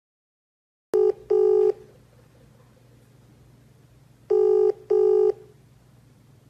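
A phone call rings out in short repeated tones.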